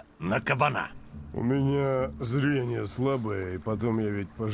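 A second man answers with animation.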